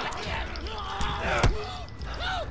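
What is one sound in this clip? Heavy punches land with dull thuds in a scuffle.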